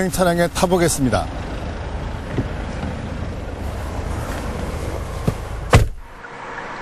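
Traffic hums steadily nearby.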